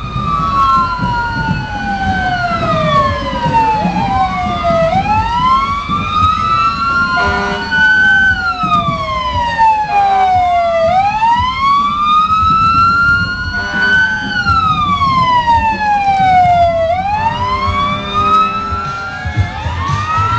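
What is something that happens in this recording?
Truck engines rumble as they roll slowly past.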